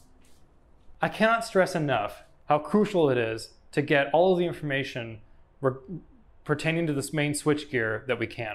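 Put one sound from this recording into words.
A man speaks calmly and with animation, close by.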